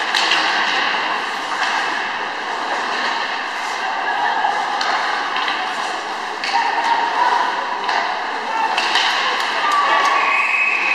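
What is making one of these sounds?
Skate blades scrape and carve across the ice.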